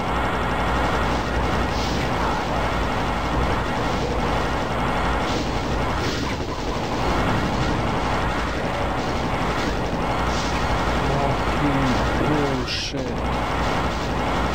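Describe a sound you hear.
A plasma gun fires rapid buzzing shots.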